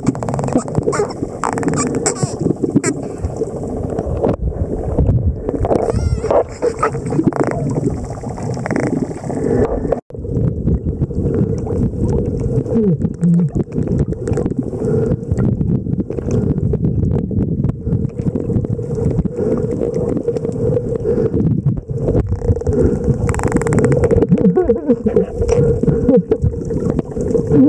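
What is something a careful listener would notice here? Water murmurs with a steady, muffled underwater rumble.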